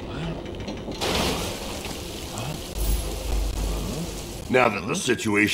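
Water bursts out and gushes with a loud rush.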